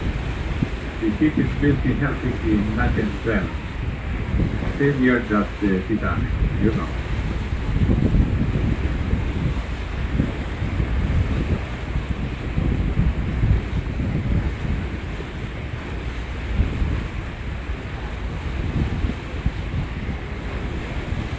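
Choppy water splashes and laps nearby.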